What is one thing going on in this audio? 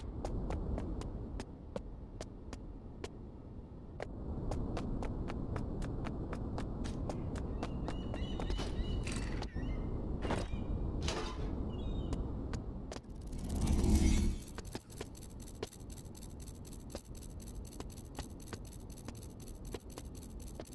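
Heavy boots tread steadily on hard ground.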